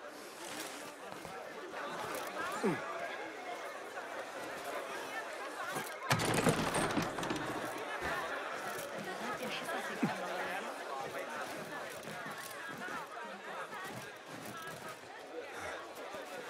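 Quick footsteps thud and patter across wooden planks and rooftops.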